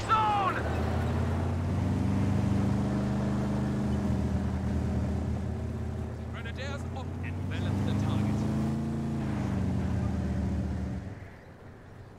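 Tank engines rumble low and steadily.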